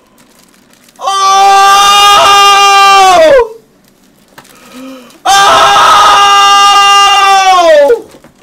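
A young man screams into a microphone in long, drawn-out yells.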